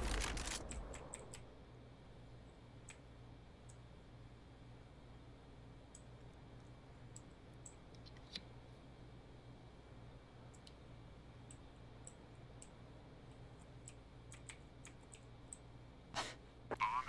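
Footsteps tap softly on hard ground.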